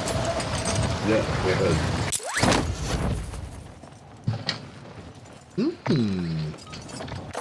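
A man speaks close into a microphone in short bursts.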